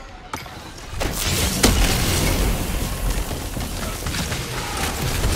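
A crackling energy blast roars loudly.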